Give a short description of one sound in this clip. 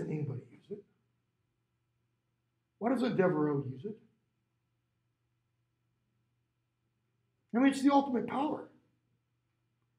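A middle-aged man speaks calmly through a face mask in short phrases, close by.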